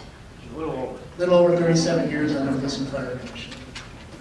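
A man speaks through a microphone in a large room.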